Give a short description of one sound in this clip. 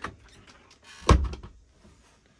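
A wooden door slides and knocks shut.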